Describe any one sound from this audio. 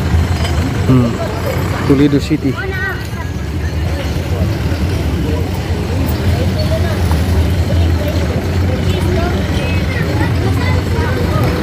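A crowd of men and women chatter casually nearby, outdoors.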